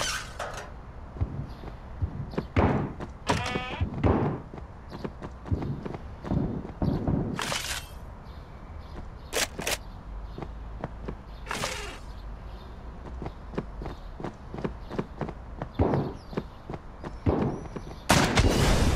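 Footsteps thud across a wooden floor.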